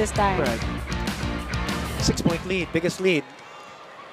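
Young women cheer and shout together up close.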